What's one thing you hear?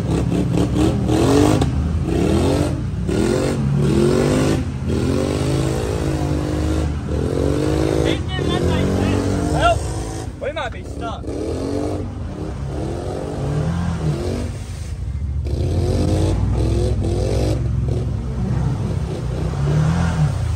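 An off-road vehicle's engine rumbles steadily while driving.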